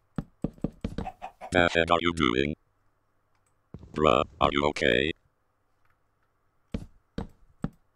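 Wooden blocks knock softly as they are placed.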